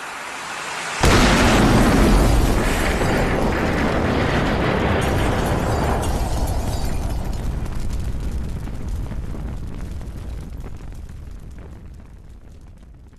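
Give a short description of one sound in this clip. A train rumbles past and slowly fades away.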